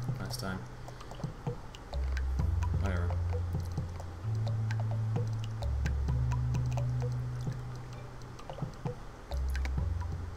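Low electronic music drones with a deep pulsing bass.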